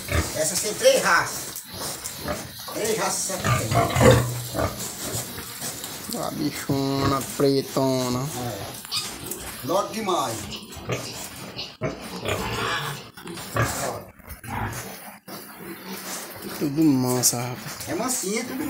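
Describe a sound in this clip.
Pigs grunt and snuffle.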